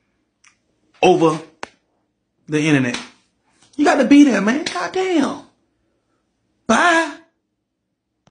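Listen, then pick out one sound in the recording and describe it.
A man speaks with animation close to a phone microphone, in short bursts with pauses.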